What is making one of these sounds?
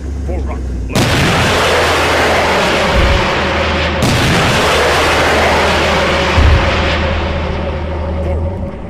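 A loud explosion booms and roars, then slowly dies away.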